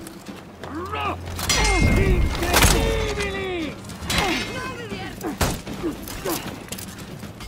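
Metal swords clash and ring in a fight.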